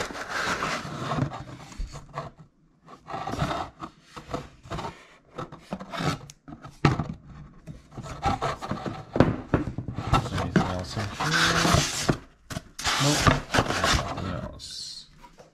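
Cardboard rustles and scrapes as a box is opened and handled.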